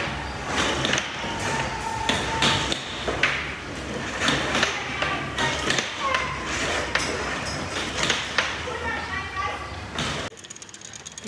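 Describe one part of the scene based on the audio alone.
An air hockey puck clacks against paddles and the table's rails.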